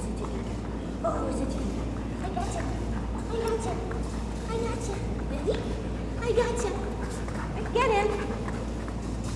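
A woman talks encouragingly to a dog.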